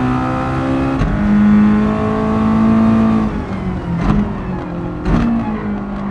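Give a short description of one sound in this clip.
A racing car's engine cuts briefly at each gear change.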